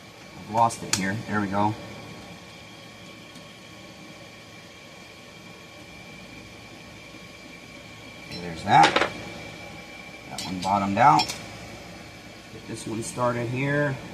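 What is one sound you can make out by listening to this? Small metal parts click and clink.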